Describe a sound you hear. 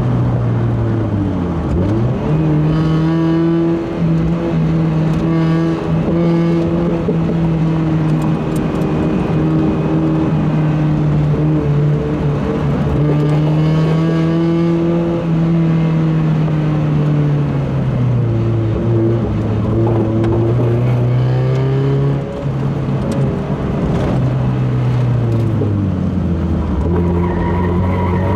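A Mazda Miata four-cylinder engine revs hard through the gears, heard from inside the cabin.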